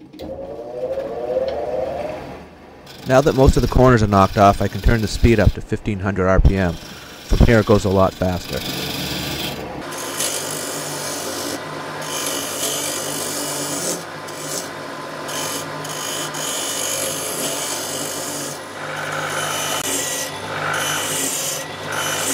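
A wood lathe motor hums steadily.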